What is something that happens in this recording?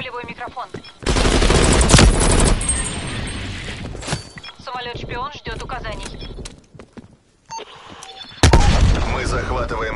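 Rapid gunfire rattles in short loud bursts.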